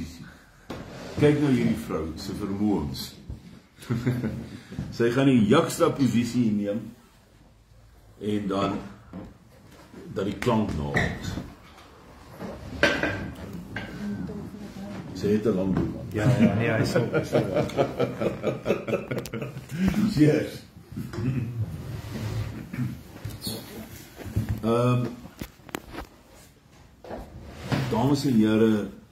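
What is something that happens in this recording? An elderly man talks with animation close by.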